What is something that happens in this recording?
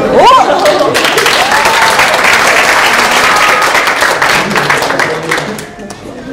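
A group of people clap and cheer.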